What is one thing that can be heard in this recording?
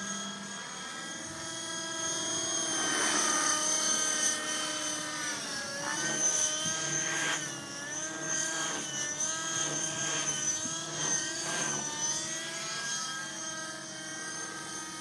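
A nitro-engine radio-controlled helicopter whines as it flies overhead, its pitch rising and falling.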